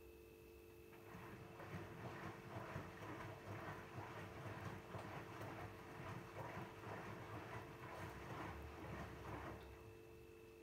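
Laundry sloshes and tumbles in a washing machine drum.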